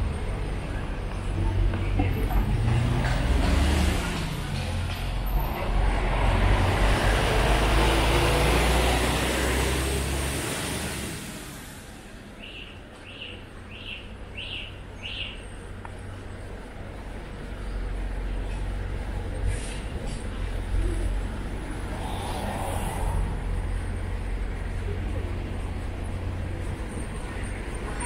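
Light traffic hums along a street outdoors.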